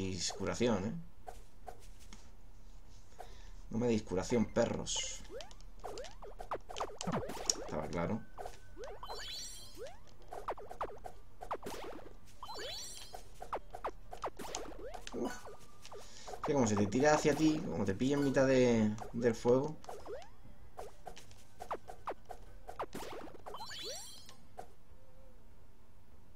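Retro video game sound effects chirp and blip in quick bursts.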